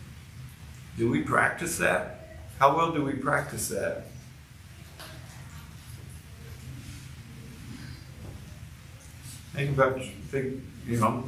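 An older man speaks calmly and up close, with pauses.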